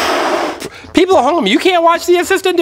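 A rubber balloon squeaks as it is rubbed.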